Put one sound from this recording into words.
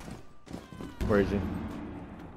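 A gunshot rings out.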